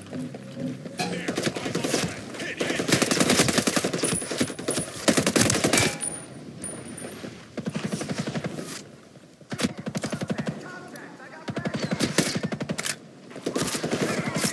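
Rifles fire in rapid bursts of shots.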